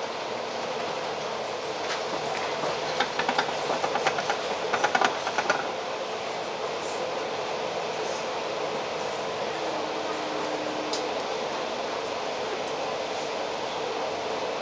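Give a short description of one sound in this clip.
A tram rattles along its tracks nearby.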